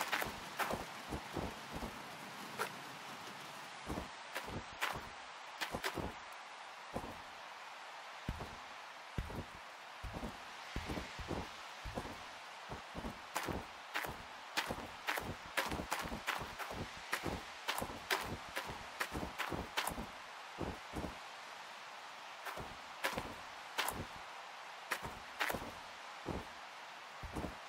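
Footsteps crunch steadily on loose gravel.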